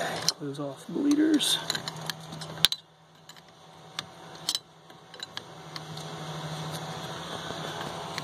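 A metal wrench clinks against a fitting.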